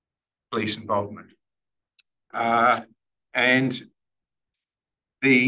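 A man speaks calmly in short phrases with pauses between them.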